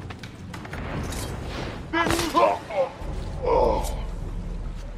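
A body drops and lands with a heavy thud.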